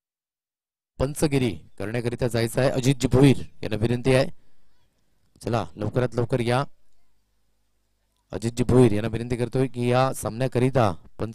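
A man announces loudly over a loudspeaker with animation.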